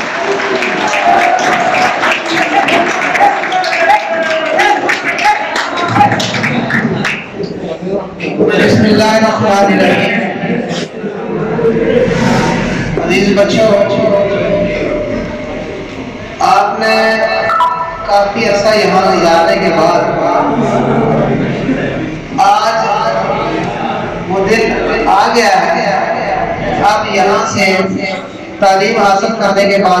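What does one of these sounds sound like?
A man speaks steadily into a microphone, heard through a loudspeaker in an echoing room.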